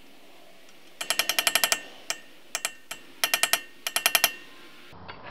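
A hammer strikes metal in quick rapid blows.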